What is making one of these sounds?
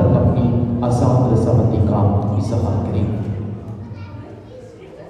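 An elderly man reads aloud close by.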